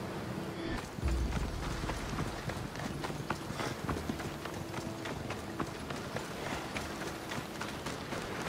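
Footsteps run quickly over dirt and gravel.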